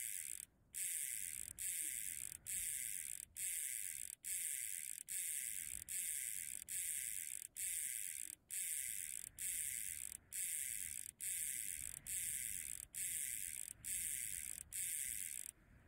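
Number dials click as they turn.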